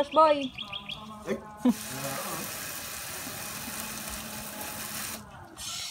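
Water sprays from a garden hose.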